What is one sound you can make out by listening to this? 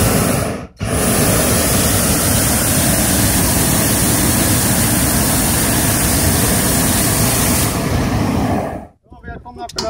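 A hot-air balloon burner roars.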